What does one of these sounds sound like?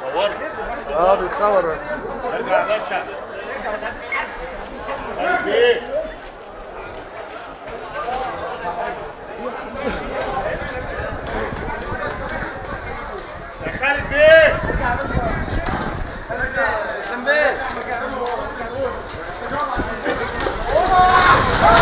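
Men shout and talk excitedly nearby outdoors.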